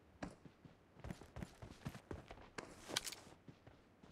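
Grass rustles as a soldier crawls through it.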